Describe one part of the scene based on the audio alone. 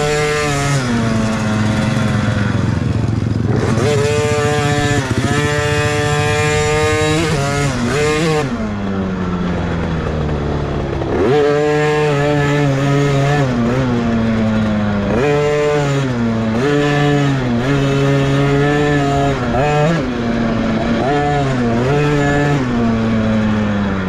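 A dirt bike engine revs up and down close by, rising and falling in pitch.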